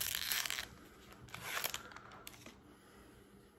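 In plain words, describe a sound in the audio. Foil packaging crinkles and rustles in hands.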